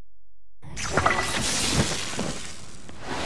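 An electric crackle bursts loudly.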